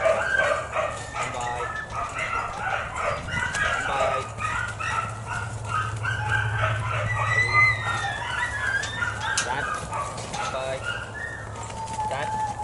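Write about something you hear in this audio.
Sheep bleat loudly and repeatedly nearby.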